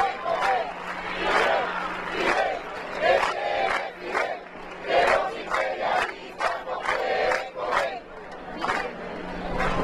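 A crowd claps along in rhythm outdoors.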